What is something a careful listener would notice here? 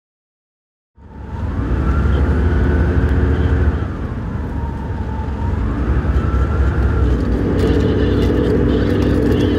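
A vehicle engine drones loudly from inside the cabin.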